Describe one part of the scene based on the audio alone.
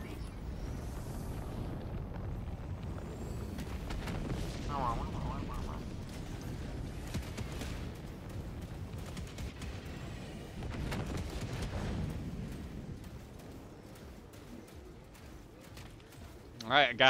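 A low rumble of engines and explosions rolls on steadily.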